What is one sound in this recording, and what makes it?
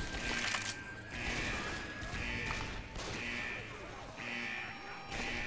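A rifle fires single loud shots close by.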